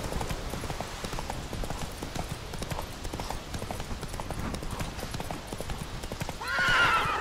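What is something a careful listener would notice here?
A horse's hooves thud quickly on a dirt path.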